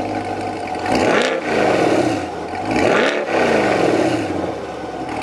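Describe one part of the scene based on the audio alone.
A sports car engine revs sharply a few times, then settles.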